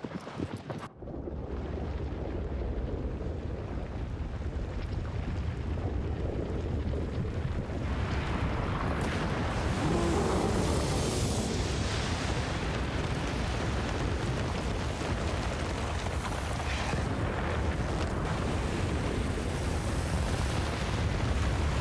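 A deep, heavy rumble grows as a giant creature bursts up through sand.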